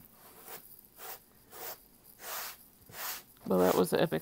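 A hand pats lightly on a tabletop.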